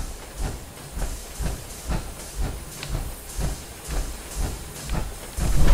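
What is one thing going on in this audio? Heavy armored footsteps thud and clank steadily on a hard floor.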